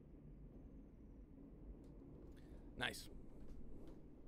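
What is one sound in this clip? Wind rustles softly through tall grass.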